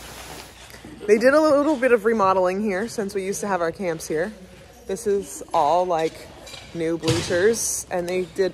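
A woman talks animatedly close by.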